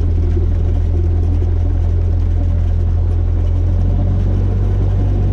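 Wheels rumble over grass as a small plane rolls along.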